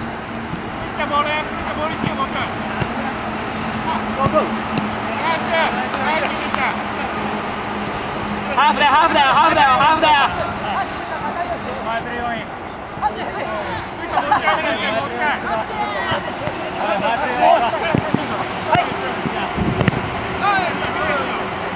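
Young men shout and call to each other across an outdoor field.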